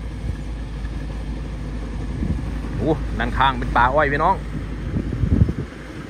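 A combine harvester engine rumbles steadily in the distance.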